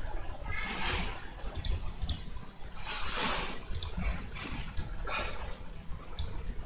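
A young woman talks casually into a close headset microphone.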